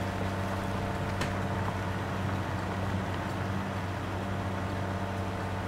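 A tractor engine drones steadily.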